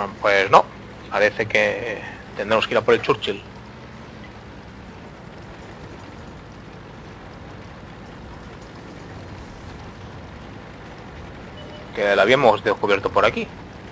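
A tank engine rumbles low and steady.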